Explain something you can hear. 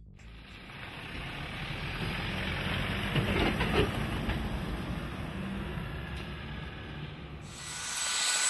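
A pickup truck towing a boat trailer drives past close by, with a rumbling engine and tyre noise.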